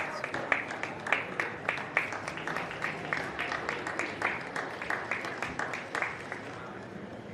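An audience claps in a large echoing hall, then the applause fades.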